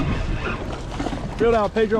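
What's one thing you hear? A hooked fish splashes at the surface.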